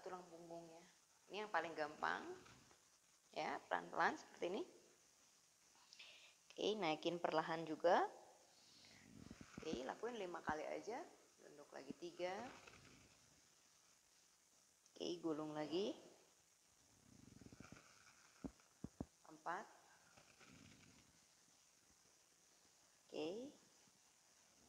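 A woman speaks calmly, giving instructions close by.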